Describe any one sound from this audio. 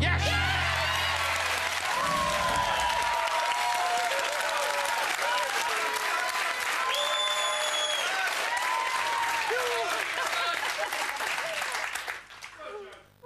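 A studio audience cheers and applauds loudly.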